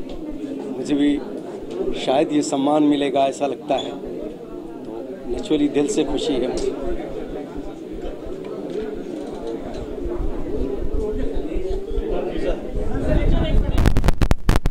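A middle-aged man speaks cheerfully into several microphones close by.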